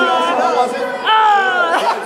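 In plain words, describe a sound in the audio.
A woman sings into a microphone through a loudspeaker.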